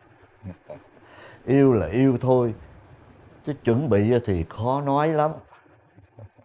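A middle-aged man talks warmly and laughs nearby.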